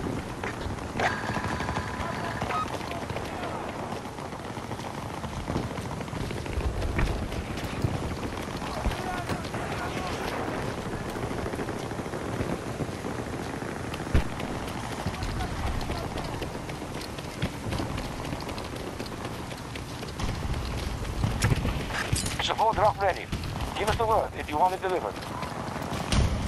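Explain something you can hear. Strong wind and rain roar steadily outdoors.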